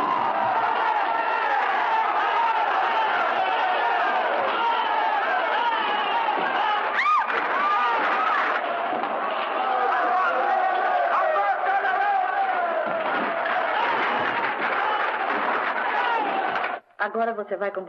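A crowd of men and women shouts and cheers loudly.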